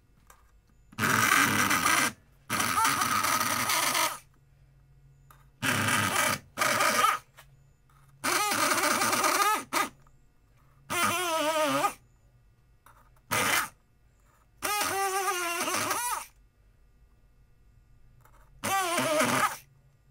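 A rotary tool whines in short bursts, its pitch rising and falling as it grinds into a pumpkin.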